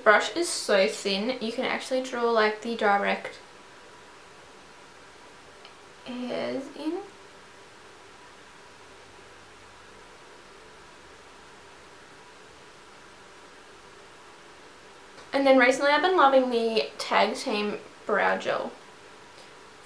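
A young woman talks calmly and close by, in bursts with pauses.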